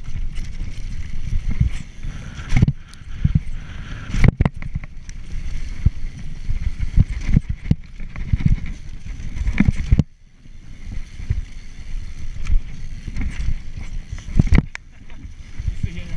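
A mountain bike rattles and clunks over bumps.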